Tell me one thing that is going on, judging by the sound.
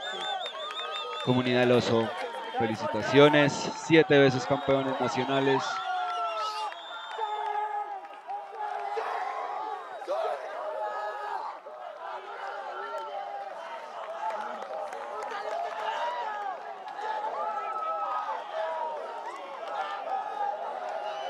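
A crowd of young men and women chatter and call out excitedly outdoors.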